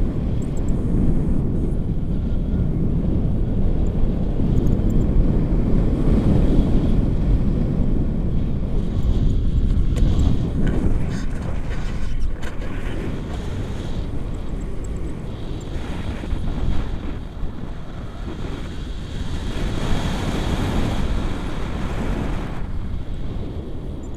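Strong wind buffets and roars against a microphone high in the air.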